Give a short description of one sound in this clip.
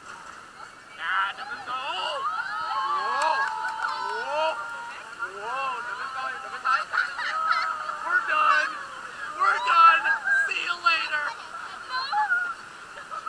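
Young women laugh and scream excitedly.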